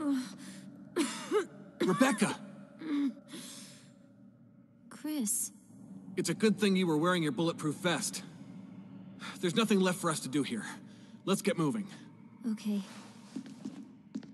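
A man speaks urgently, then calmly, close by.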